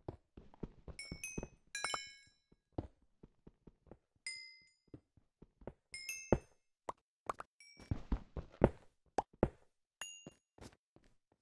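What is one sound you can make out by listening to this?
Small chimes ring as loose pieces are picked up.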